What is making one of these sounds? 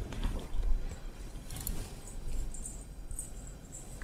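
Silk fabric rustles as it is handled.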